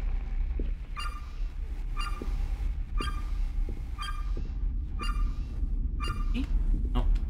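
An electronic meter beeps in a steady, quick rhythm.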